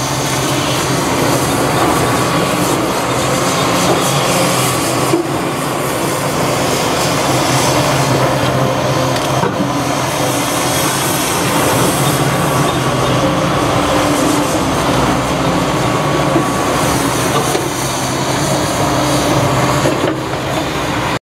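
A large diesel engine rumbles steadily close by, rising and falling as it works.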